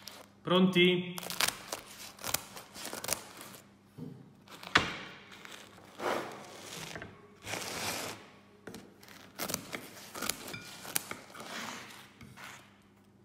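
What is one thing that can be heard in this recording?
Scissors crunch through crisp pizza crust.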